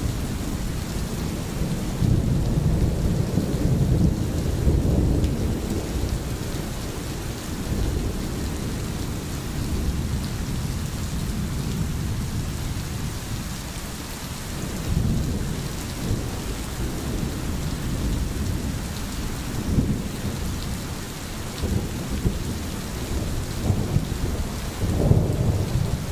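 Steady rain falls outdoors.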